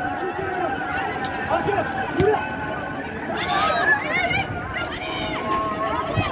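Young women shout and call to each other across an open outdoor pitch.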